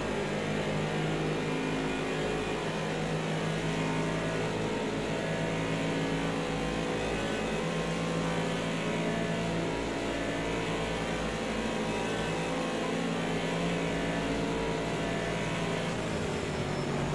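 A racing car engine roars steadily at high revs, shifting pitch through gear changes.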